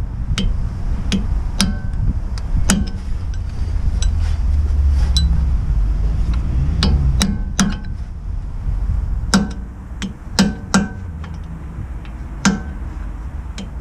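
A metal tool clicks and clinks against a wheel hub.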